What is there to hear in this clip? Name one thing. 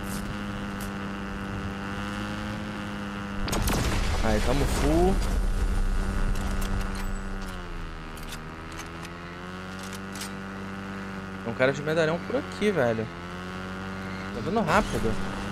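A dirt bike engine hums steadily, its pitch rising and falling.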